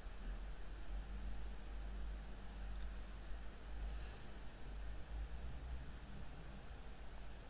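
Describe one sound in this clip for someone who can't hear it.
A young man speaks quietly into a headset microphone.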